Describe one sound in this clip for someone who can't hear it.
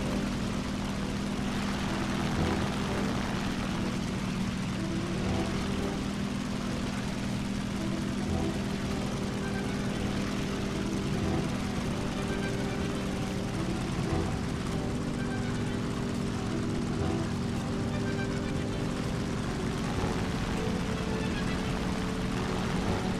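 Wind rushes past a plane in flight.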